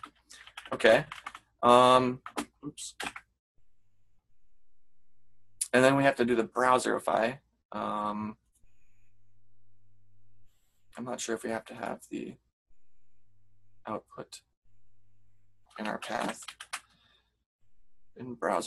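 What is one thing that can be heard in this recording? A man talks calmly through a headset microphone, heard as in an online call.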